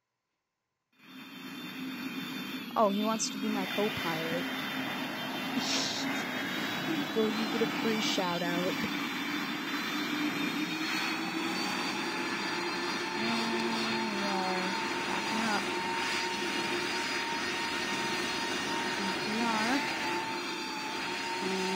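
Jet engines hum steadily as a large airliner taxis.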